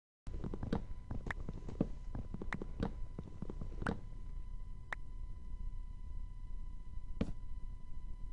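An axe chops wood with quick, dull knocks.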